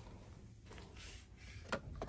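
A hand rustles a plastic package on a shelf.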